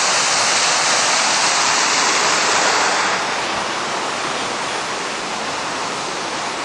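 Water splashes and trickles steadily from a small fountain, then grows quieter.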